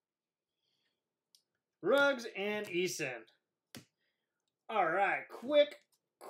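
Plastic card holders click and rustle in hands.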